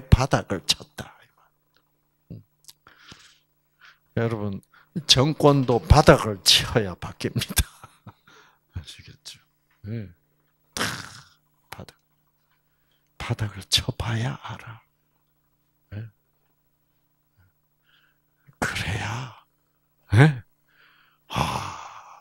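An elderly man speaks through a microphone and loudspeaker, with pauses.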